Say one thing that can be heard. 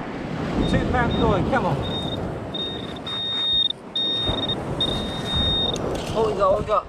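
A metal detector gives high, steady beeps.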